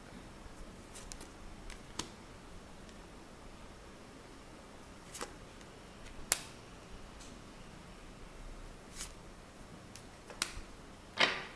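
Cards slap softly down onto a table.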